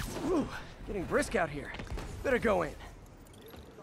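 A young man speaks casually into a microphone.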